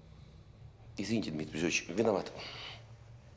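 An older man speaks in a low, firm voice.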